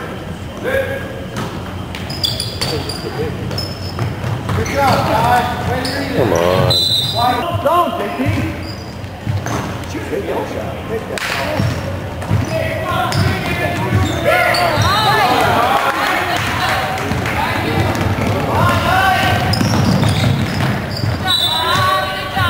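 Young male players shout to each other across the court.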